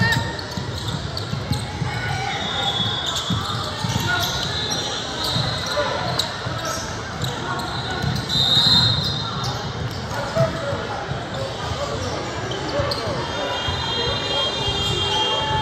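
Players and spectators talk and call out in a large echoing gym.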